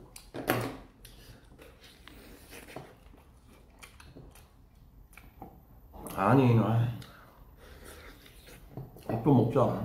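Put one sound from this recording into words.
A young man slurps soup noisily.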